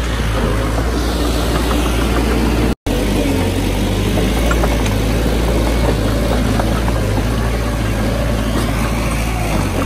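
Bulldozer tracks clank and squeak over dirt.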